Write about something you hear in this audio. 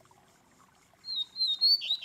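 A caged songbird sings loud, sharp whistling phrases close by.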